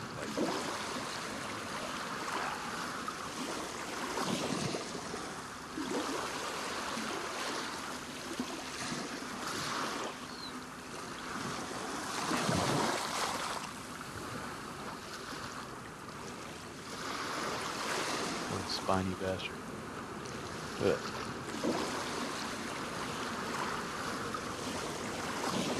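Gentle waves lap against a wooden pier.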